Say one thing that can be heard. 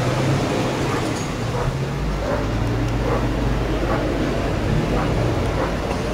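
An aircraft engine drones low overhead.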